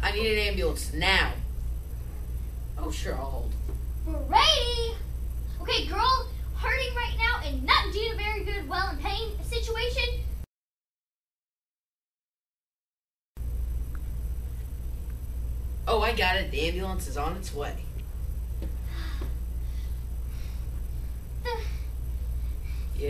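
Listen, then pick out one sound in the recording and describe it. A young child talks in a high voice with animation nearby.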